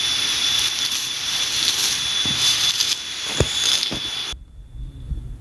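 Grass rustles and tears as it is pulled up by hand.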